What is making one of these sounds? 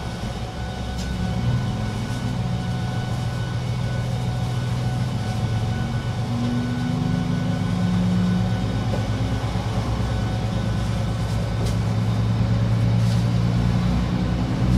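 A train's electric motor whirs and rises in pitch as the train pulls away.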